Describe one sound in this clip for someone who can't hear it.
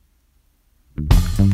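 Loud game music suddenly starts from a tablet.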